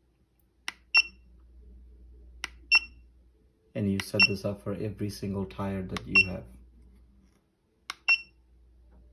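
A small electronic device beeps sharply several times.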